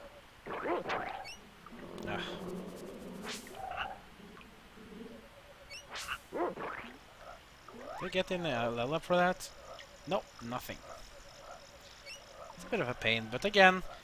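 A sword swishes and strikes an animal.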